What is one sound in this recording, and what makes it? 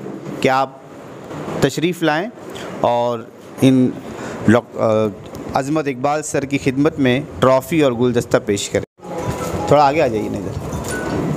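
A man speaks into a microphone with animation, heard through a loudspeaker in an echoing hall.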